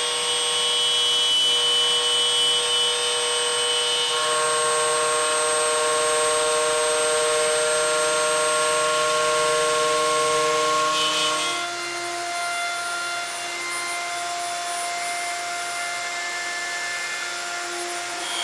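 A power router whines loudly and steadily.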